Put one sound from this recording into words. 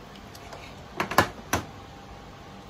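Plastic parts click and rattle as they are handled.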